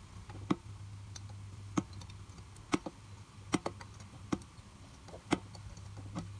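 A ratchet wrench clicks on a bolt.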